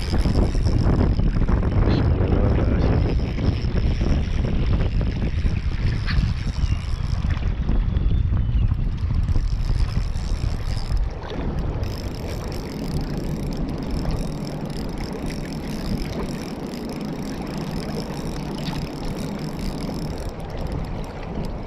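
Small waves lap gently against rocks at the water's edge.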